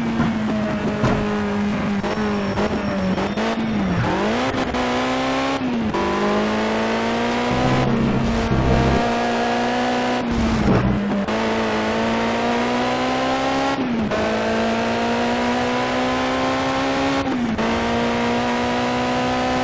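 A racing car engine roars, rising in pitch through each gear and dropping sharply at each shift.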